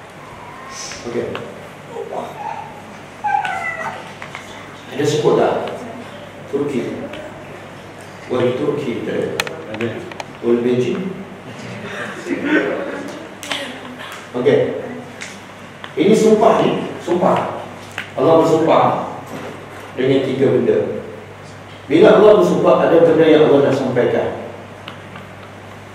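A middle-aged man lectures with animation through a clip-on microphone, in short bursts with pauses.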